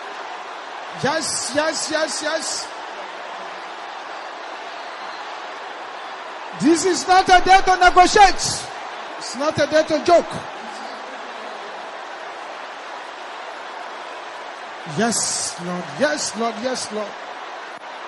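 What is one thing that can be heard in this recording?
A man speaks with fervour through a microphone, in short bursts.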